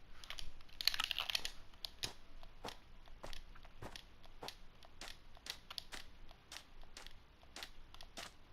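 Footsteps crunch on snow and sand in quick, even steps.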